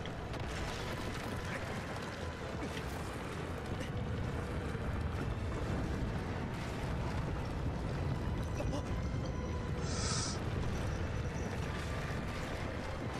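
A deep, heavy rumble goes on steadily as a giant creature moves.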